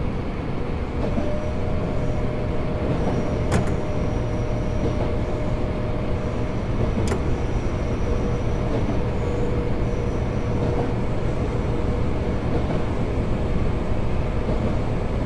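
A train's motor hums with a steady whine.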